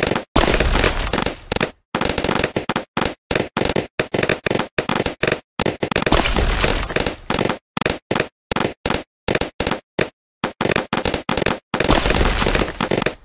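Balloons pop in quick bursts of small pops.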